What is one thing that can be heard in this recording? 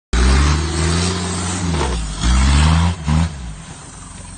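An engine revs hard, then drops back to idle.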